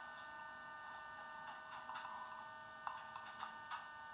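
A spoon scrapes and clinks against a bowl.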